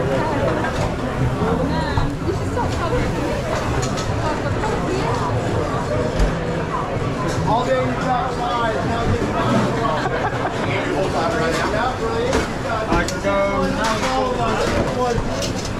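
A crowd of people chatter throughout a busy room.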